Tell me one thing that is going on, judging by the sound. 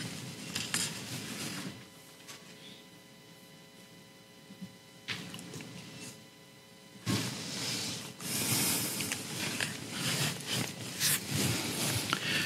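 A man lectures into a microphone in a room, speaking calmly with pauses.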